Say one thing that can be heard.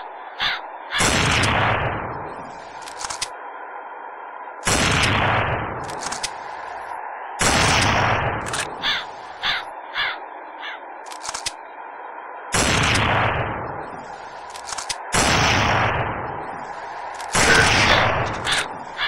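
A sniper rifle fires loud booming shots that echo away.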